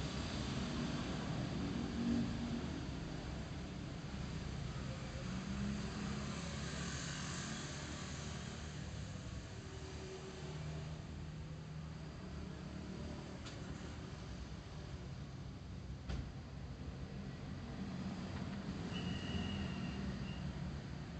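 A motorbike engine hums steadily up close as it rides along a road.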